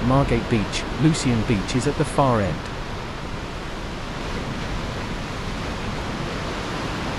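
Waves wash steadily onto the shore.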